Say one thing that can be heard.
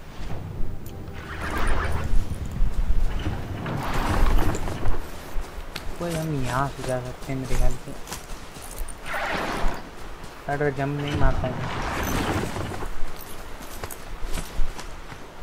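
A mechanical beast's feet thud and clank as it runs over rocky ground.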